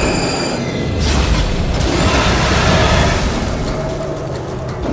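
Debris crashes and rumbles as structures collapse.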